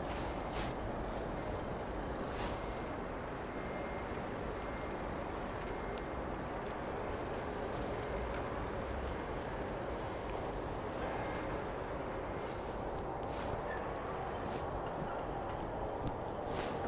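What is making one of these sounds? Water washes past a ferry's hull.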